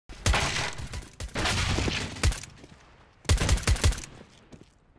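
A silenced pistol fires several muffled shots.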